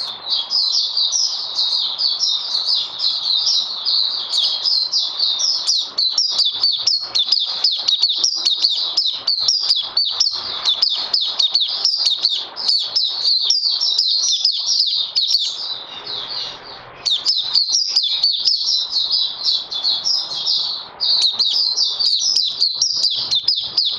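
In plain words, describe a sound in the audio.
A small bird sings a fast, high, twittering song close by.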